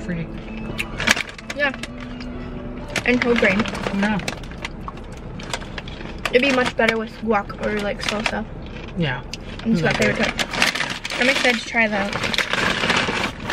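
A plastic snack bag crinkles.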